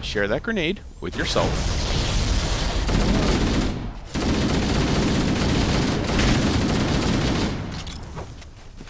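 Gunfire rattles rapidly in a video game.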